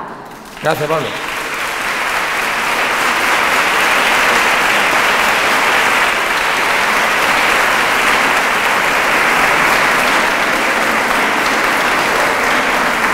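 A crowd applauds steadily in a large echoing hall.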